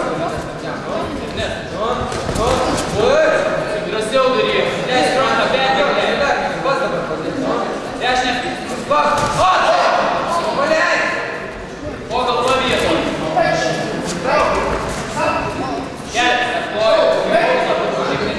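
Fighters' kicks and punches thud against each other.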